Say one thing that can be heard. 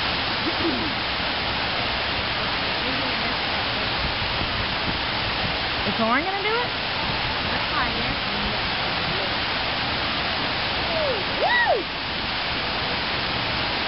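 Rushing water roars steadily.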